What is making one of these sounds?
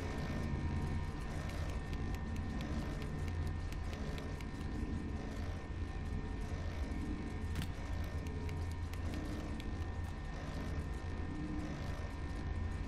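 Small footsteps patter across a tiled floor.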